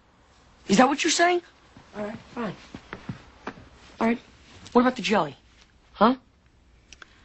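A boy speaks with animation close by.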